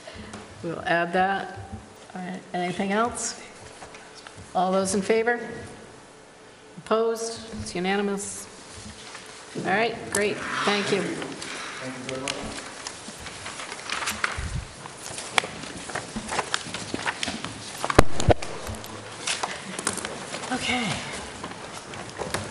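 A middle-aged woman speaks calmly into a microphone in a room with some echo.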